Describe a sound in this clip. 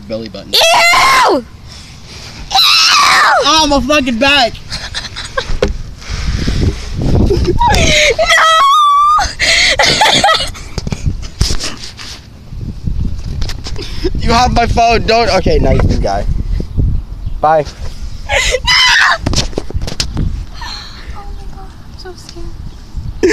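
A young woman talks and laughs with animation, close to the microphone.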